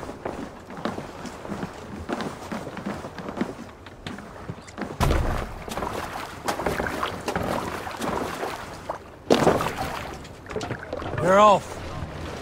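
Footsteps thud quickly on a wooden deck.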